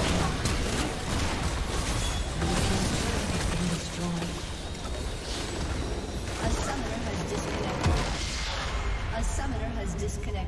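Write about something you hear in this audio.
Spell effects crackle and whoosh during a fight.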